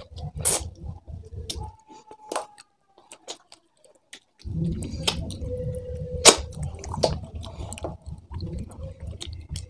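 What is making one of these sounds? A man chews food loudly and wetly, close to a microphone.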